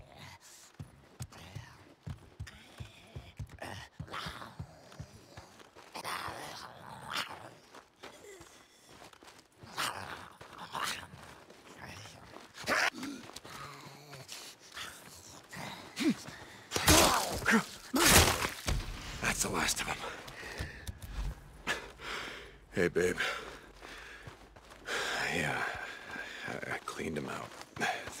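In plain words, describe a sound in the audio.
Footsteps crunch on dirt and gravel.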